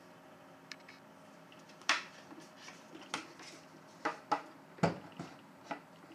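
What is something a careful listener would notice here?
A hand taps and handles a wooden guitar body.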